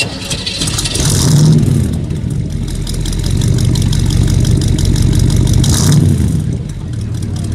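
A car engine revs sharply and settles back.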